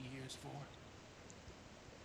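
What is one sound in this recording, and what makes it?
A man speaks calmly, up close.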